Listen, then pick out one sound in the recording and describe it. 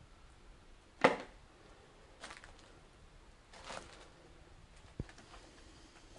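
Footsteps crunch on debris, with the scrape and knock of loose rubble underfoot.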